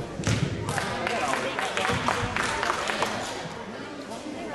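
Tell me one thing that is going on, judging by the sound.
Several people talk at once in a large echoing gym.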